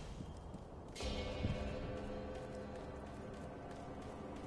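A rope whips and whooshes through the air.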